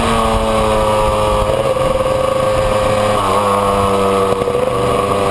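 A two-stroke twin motorcycle cruises down a winding road at a steady throttle.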